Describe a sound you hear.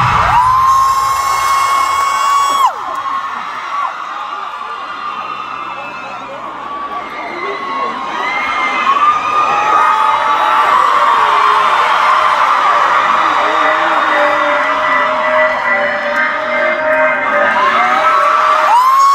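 A large crowd cheers and screams loudly in a big echoing arena.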